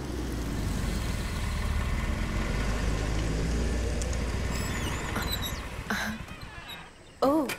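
A scooter engine hums and pulls away.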